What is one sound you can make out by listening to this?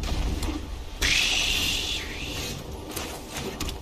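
A game sound effect whooshes and shimmers as a card is played.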